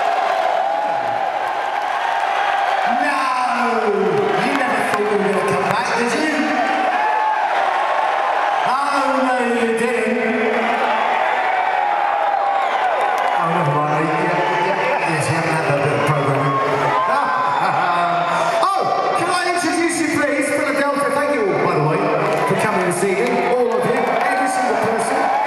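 A loud rock band plays live through a large sound system.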